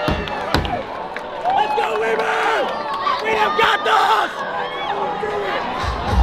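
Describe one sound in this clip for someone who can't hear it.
Young men shout and whoop close by.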